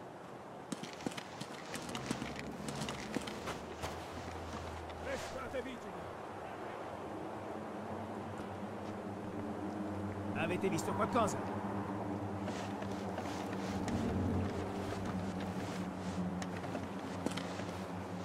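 Footsteps shuffle softly over stone and wooden boards.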